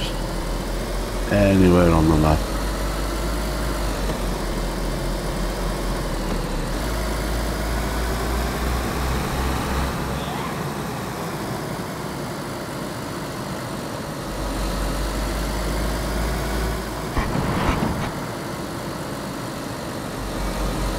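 Tyres roll over a road.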